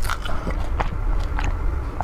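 A young woman gulps a drink close to a microphone.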